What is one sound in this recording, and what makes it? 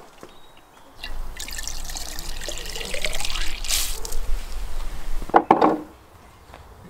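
Liquid hisses and splashes as it pours from a hose into a jug.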